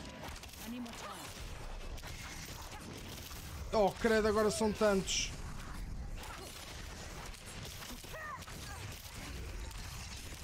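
Blows and magic blasts crackle in a fast fight with monsters.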